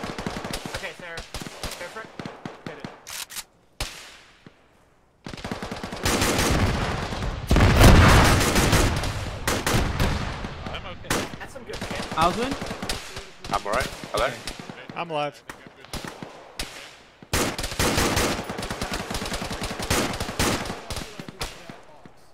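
Rifle shots crack repeatedly and echo.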